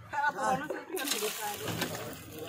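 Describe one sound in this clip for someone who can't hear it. Water gushes from a hand pump.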